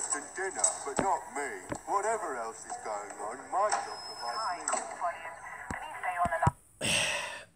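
A man speaks with animation in a comic, cartoonish voice.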